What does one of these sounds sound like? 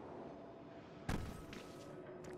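A figure lands with a heavy thud.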